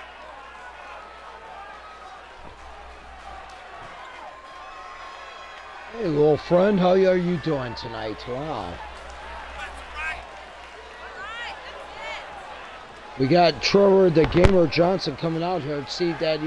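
A crowd cheers in a large arena.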